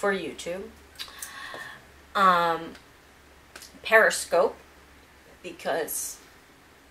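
A woman speaks close to a microphone in short phrases.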